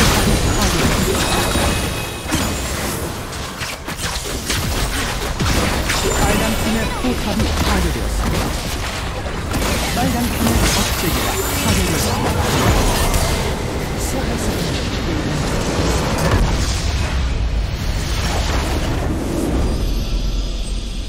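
Spells and weapons clash and explode in a hectic game battle.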